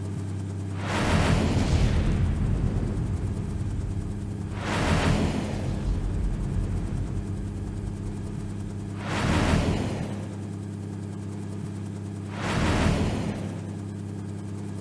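Explosions boom loudly several times.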